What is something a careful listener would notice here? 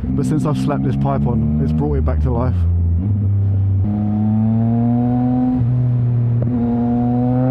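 A motorcycle engine roars close by, revving hard and then droning steadily as it shifts up through the gears.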